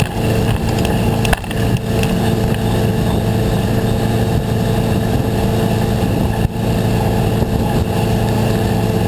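A motorboat engine drones steadily at speed.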